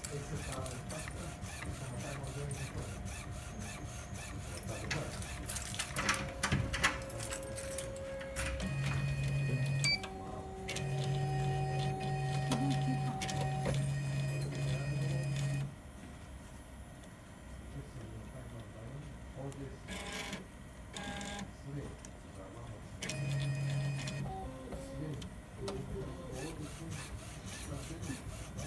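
A printer hums and whirs as its print head moves back and forth.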